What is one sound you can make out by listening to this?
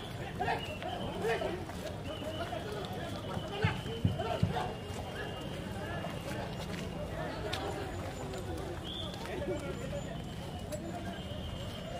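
Footsteps scuff on pavement as several men walk.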